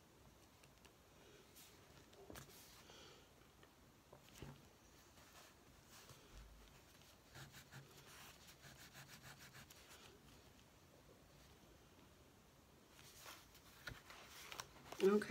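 Paper pages rustle softly under hands.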